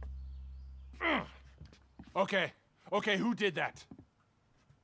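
A man asks a question loudly, sounding surprised.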